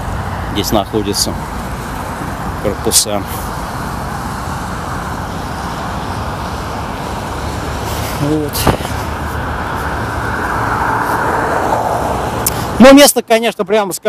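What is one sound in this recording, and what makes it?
Traffic hums steadily on a nearby road.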